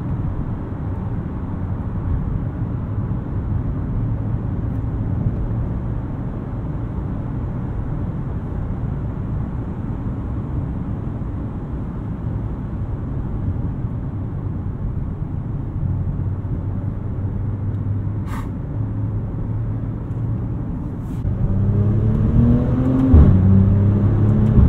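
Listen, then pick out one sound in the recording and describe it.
Tyres roar on the road, echoing in a tunnel.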